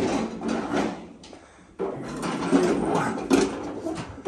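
Small wagon wheels roll and rattle over a concrete floor.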